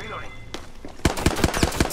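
Rapid gunshots crack close by.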